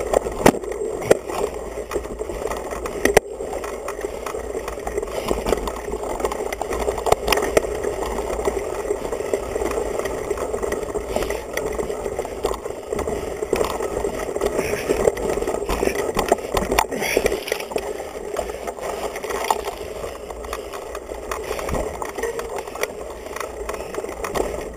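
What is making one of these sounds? A mountain bike rattles and clatters over a rough dirt trail.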